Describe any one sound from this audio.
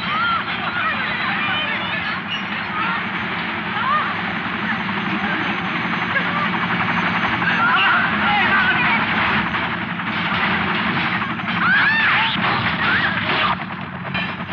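A crowd of men and women shouts and exclaims.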